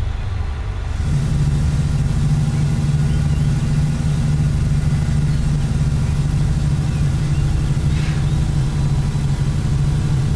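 A truck engine drones lower and louder as it picks up pace.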